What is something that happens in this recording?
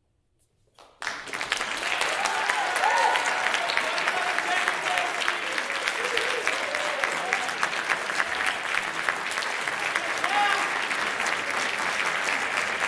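An audience applauds loudly and cheers in an echoing hall.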